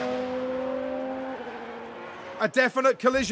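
A racing car engine drones at high revs.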